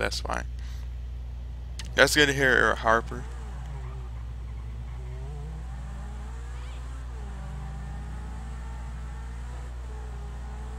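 A sports car engine roars and revs as it speeds along.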